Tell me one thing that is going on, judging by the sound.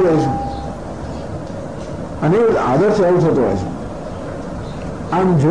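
A man sings a slow chant.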